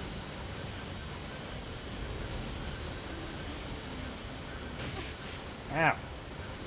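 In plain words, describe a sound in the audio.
Energy beams crackle and hum in a video game battle.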